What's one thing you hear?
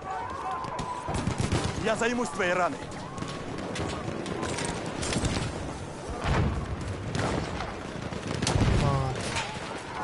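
Rifle shots crack and boom in quick bursts.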